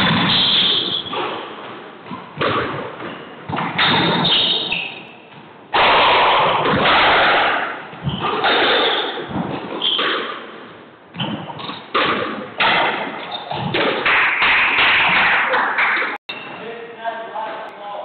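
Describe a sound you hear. A squash ball smacks against the walls with sharp echoing hits in a large hard-walled court.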